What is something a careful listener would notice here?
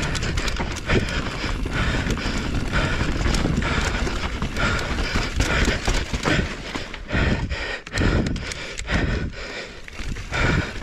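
Bicycle tyres rattle and crunch over a rough dirt trail at speed.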